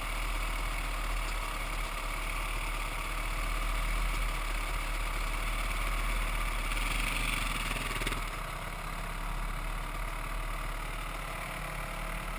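Another dirt bike engine revs nearby as it crosses rough ground.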